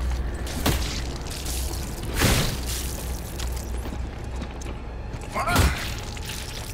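A heavy boot stomps down with a loud wet thud.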